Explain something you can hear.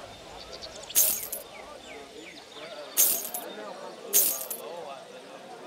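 Short metallic clanks sound as pieces of armour are equipped.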